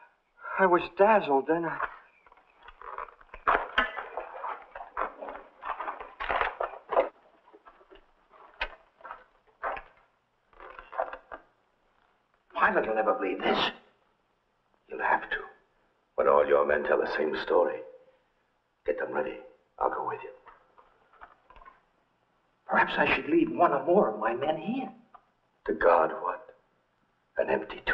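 A man speaks firmly and clearly nearby.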